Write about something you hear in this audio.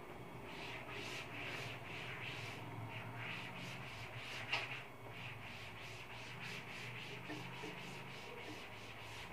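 Chalk scratches and taps rhythmically on a blackboard.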